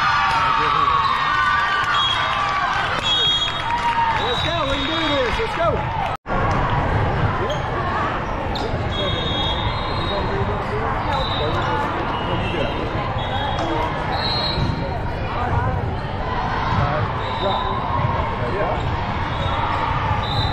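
A crowd chatters and calls out throughout a large echoing hall.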